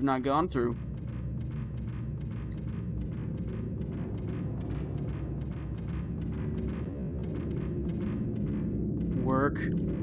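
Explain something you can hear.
Footsteps patter quickly across a wooden floor.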